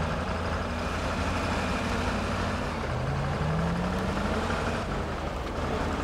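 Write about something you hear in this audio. Tyres crunch over rocks and mud.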